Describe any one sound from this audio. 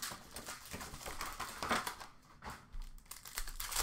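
Cardboard packs clatter into a plastic bin.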